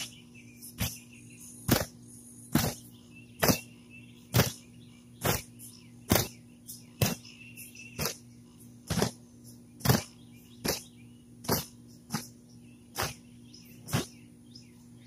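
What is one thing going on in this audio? A mallet pounds a stake into the ground in a steady rhythm, roughly once a second.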